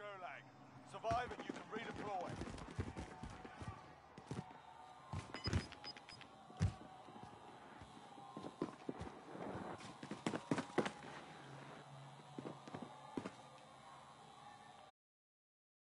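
Footsteps shuffle and knock on a hard floor.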